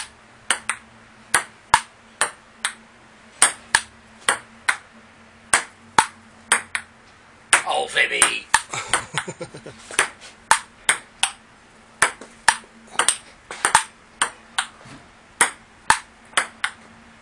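A ping pong ball clicks sharply back and forth on a table and paddles.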